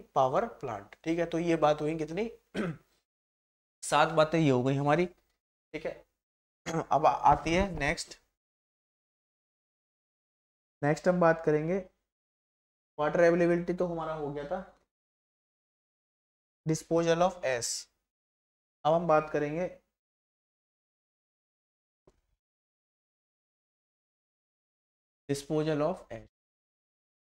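A man lectures calmly into a close microphone, in short bursts with pauses.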